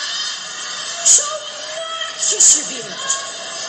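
A young person shouts loudly.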